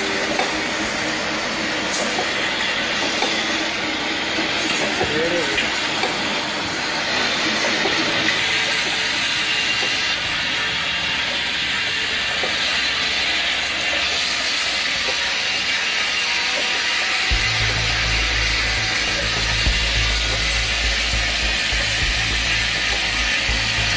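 Plastic bottles rattle and knock together on a conveyor.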